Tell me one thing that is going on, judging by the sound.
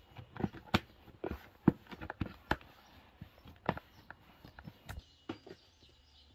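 Hands squelch and slap as they knead a wet mixture in a plastic bowl.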